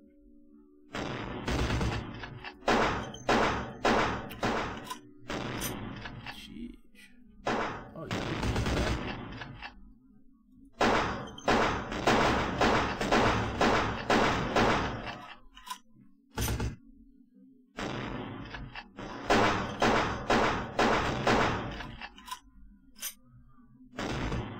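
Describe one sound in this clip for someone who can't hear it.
Gunshots fire in rapid bursts, echoing loudly.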